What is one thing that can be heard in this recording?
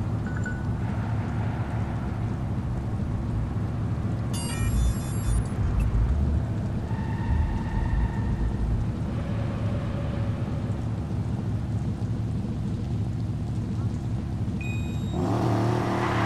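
A car engine idles quietly.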